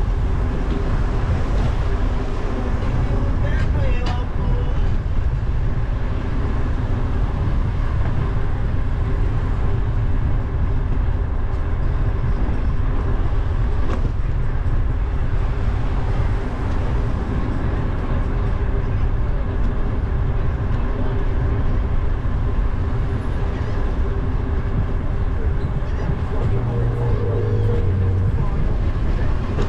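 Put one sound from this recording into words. Wind buffets loudly against a moving vehicle outdoors.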